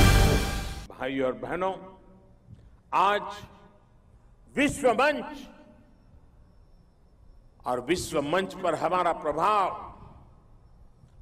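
An elderly man gives a speech into a microphone, speaking forcefully in bursts.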